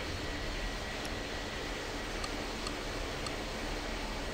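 Soft electronic clicks sound as buttons are pressed.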